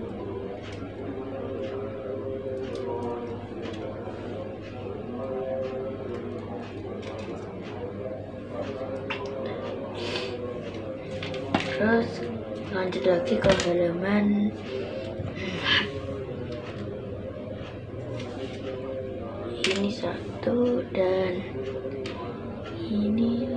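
Small plastic pieces click and rattle against a wooden table.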